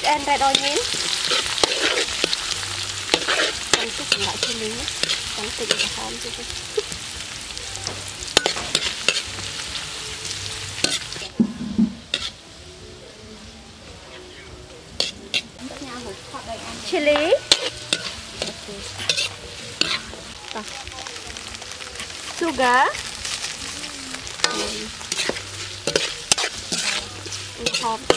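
A metal ladle scrapes and clinks against a wok.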